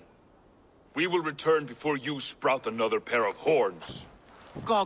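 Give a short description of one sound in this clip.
A deep-voiced man speaks firmly, close by.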